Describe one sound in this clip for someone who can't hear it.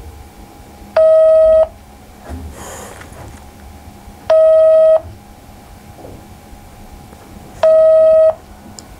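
A phone's ringing tone beeps in long, evenly spaced pulses.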